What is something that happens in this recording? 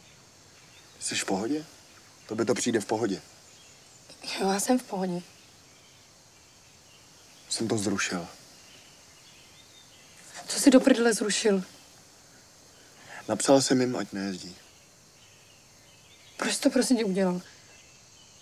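A young woman speaks in short, tense bursts close by.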